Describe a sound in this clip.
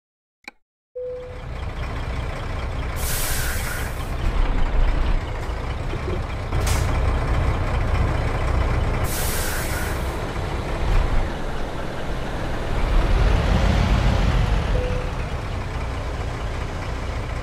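A truck engine rumbles low and steady as it reverses.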